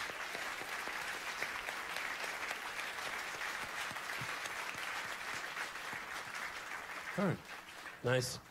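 A large crowd applauds and cheers in a big hall.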